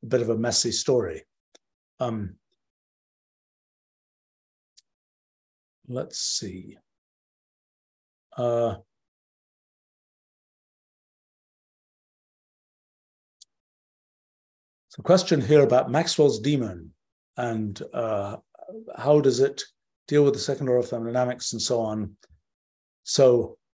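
An older man speaks calmly and haltingly over an online call, with long pauses.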